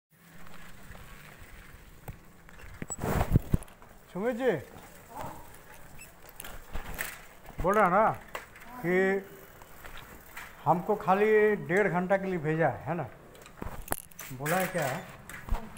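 A bicycle rattles as it rolls over pavement.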